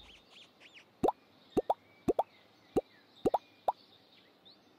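Short, bright interface clicks pop several times in quick succession.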